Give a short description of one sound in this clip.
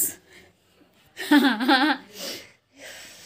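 A young woman laughs loudly close by.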